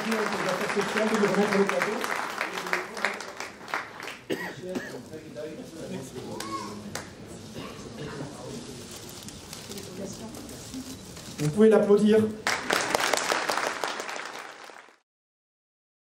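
A small crowd claps and applauds.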